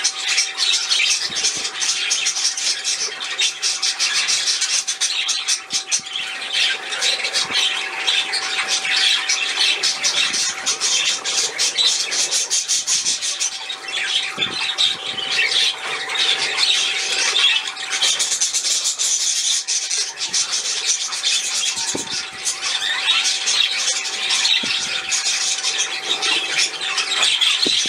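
Small birds splash and flutter in water.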